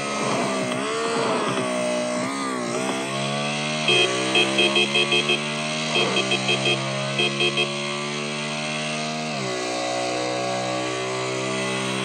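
A motorcycle engine drones steadily, its pitch rising and dropping as it shifts gears.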